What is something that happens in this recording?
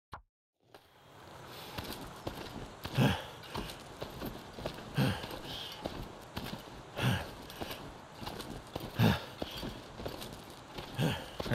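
Hands haul on a creaking rope in a steady rhythm.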